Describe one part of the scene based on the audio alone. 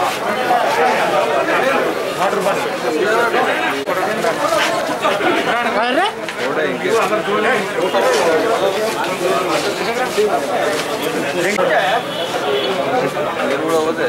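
A crowd of men chant slogans loudly together outdoors.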